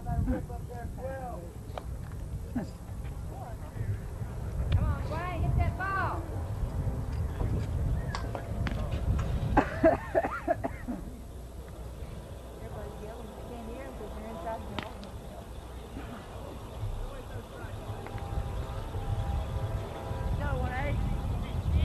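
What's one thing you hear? Men call out and shout from a distance outdoors.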